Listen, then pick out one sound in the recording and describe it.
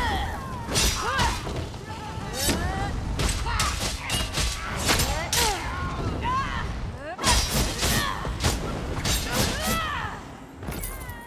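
Magic blasts burst and crackle.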